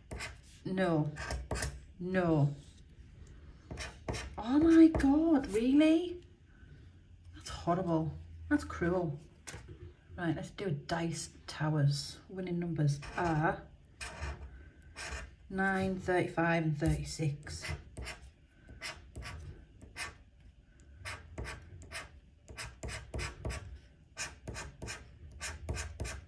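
A metal tool scrapes across a scratch card in short, rapid strokes.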